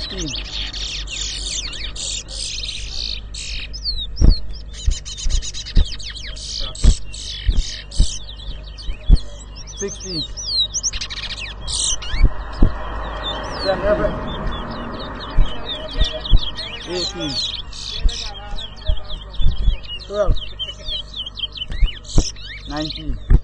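Songbirds chirp and trill loudly nearby.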